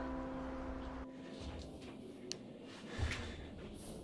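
Shoes shuffle softly on a carpeted floor.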